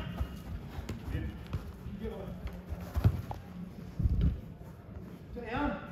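Sneakers squeak and patter on artificial turf.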